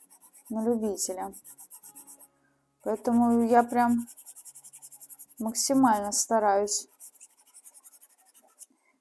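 A soft pastel scratches in quick, even strokes across paper.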